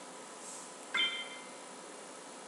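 A short bright chime rings.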